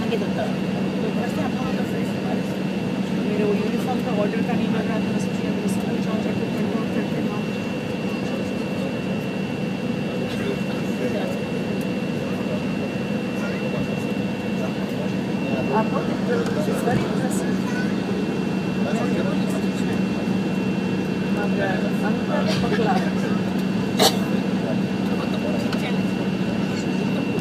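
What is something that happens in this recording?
A jet engine hums steadily with a low drone, heard from inside an airliner cabin.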